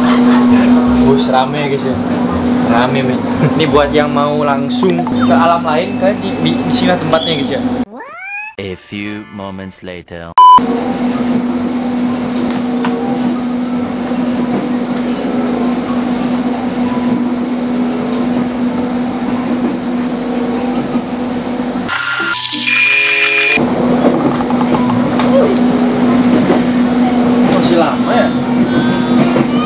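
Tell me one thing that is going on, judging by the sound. A train hums steadily while running.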